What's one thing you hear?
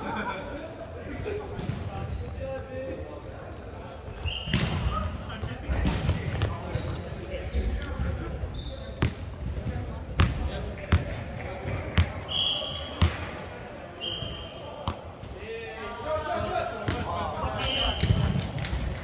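Young men and women call out and chatter in a large echoing hall.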